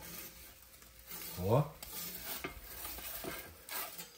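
A metal peel scrapes across an oven's stone floor.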